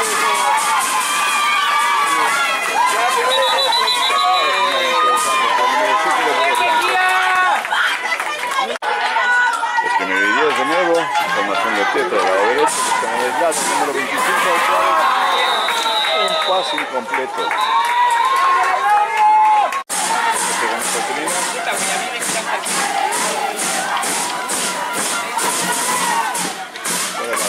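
A crowd of men and women shouts and cheers excitedly close by, outdoors.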